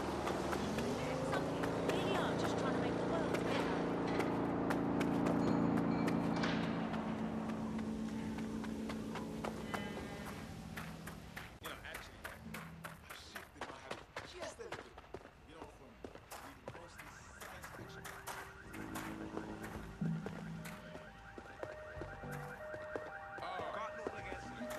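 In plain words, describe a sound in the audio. Footsteps patter quickly on pavement.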